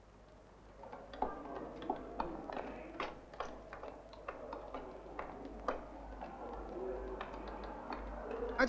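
Footsteps walk on a hard floor.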